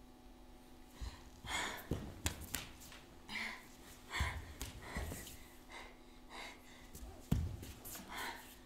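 Bare feet thump and shuffle on a wooden stage floor.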